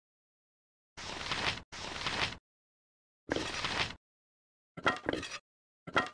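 Short chimes and clicks sound as items are moved in a game inventory.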